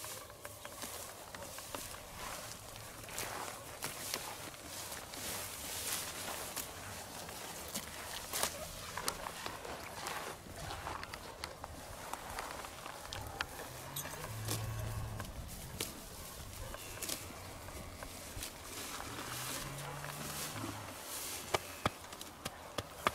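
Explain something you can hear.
Wind blows outdoors.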